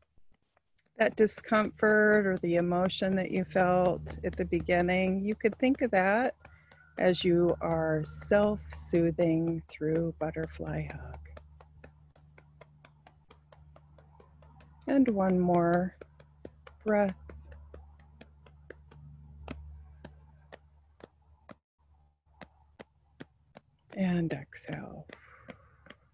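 A woman speaks calmly and slowly, close to a microphone, with long pauses.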